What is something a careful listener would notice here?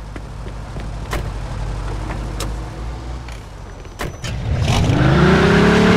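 A car door opens and slams shut.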